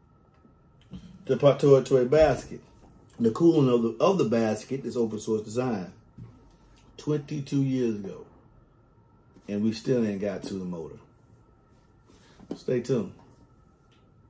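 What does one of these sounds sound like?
A man talks calmly and close by, in short bursts with pauses.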